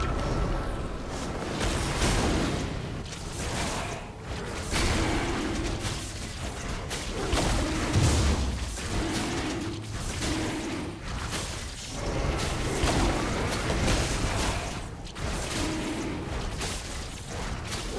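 A dragon attacks with crashing, whooshing blows.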